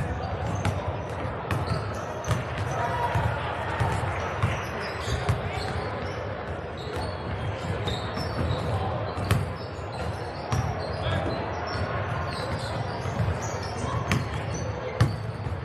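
A basketball bounces on a hard gym floor in quick, steady thuds.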